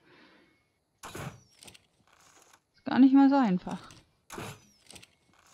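A crossbow fires a bolt with a sharp snap.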